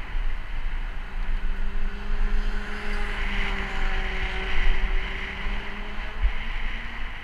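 A motorcycle engine drones past on the road.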